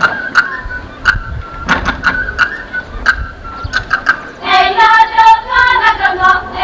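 Shoes stamp and tap rhythmically on a wooden stage.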